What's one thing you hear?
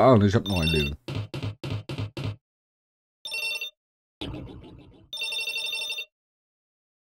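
Game score chimes tick up in rapid blips.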